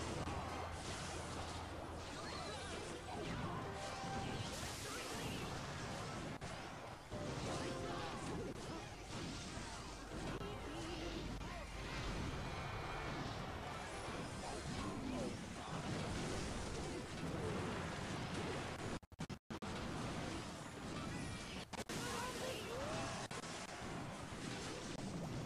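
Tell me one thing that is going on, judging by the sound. Cartoonish battle sounds clash with quick hits, zaps and small blasts.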